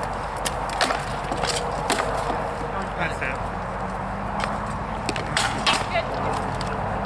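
Swords clash and knock against each other.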